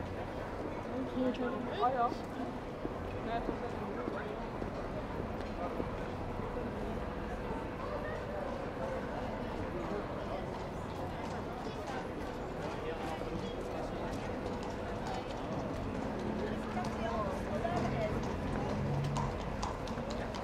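Footsteps clatter on cobblestones.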